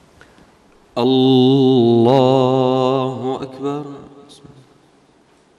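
A man chants loudly through a microphone in an echoing hall.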